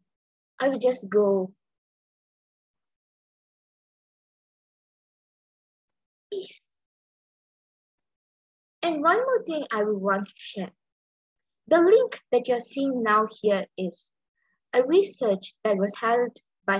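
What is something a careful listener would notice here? A young woman speaks calmly and clearly through a headset microphone, as if on an online call.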